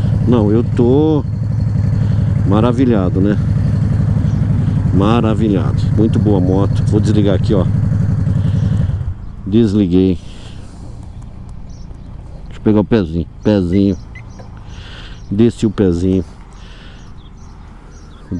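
A motorcycle engine idles with a deep, steady rumble.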